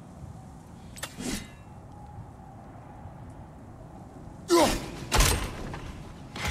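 An axe swings and strikes with a heavy thud.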